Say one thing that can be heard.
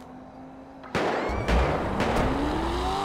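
A car engine starts and revs as the car drives off.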